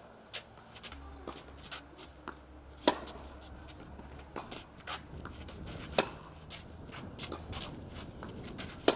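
Shoes scuff and slide on a clay court.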